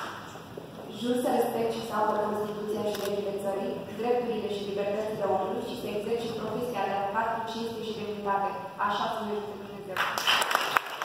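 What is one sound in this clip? A young woman speaks solemnly into a microphone over loudspeakers.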